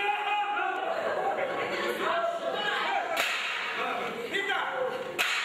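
A man shouts excitedly.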